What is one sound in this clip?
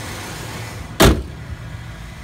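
A car hood slams shut.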